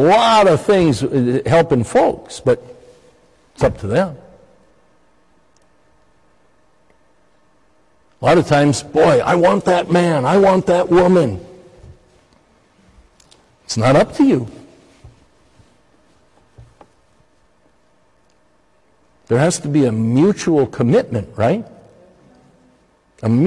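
An older man speaks with feeling through a microphone in a large echoing hall, pausing between phrases.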